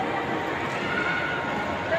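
A crowd of people chatters indistinctly in a large echoing hall.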